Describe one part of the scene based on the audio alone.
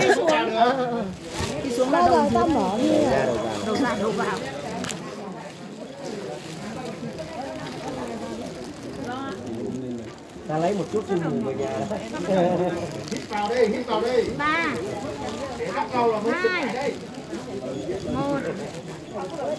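A crowd of adults chatter loudly nearby.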